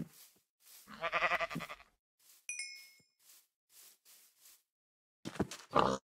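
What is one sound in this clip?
A pig grunts.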